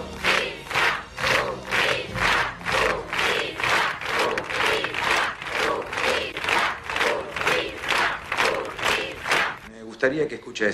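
A large crowd chants rhythmically outdoors.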